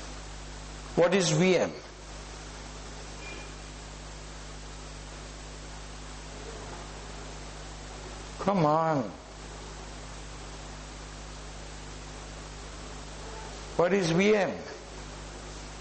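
An elderly man speaks calmly through a microphone in short phrases with long pauses.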